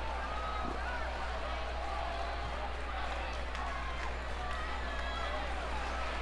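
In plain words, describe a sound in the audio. A large crowd murmurs in a big arena.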